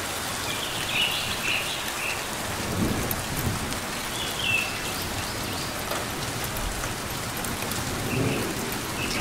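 A small bird gives short, high chirps.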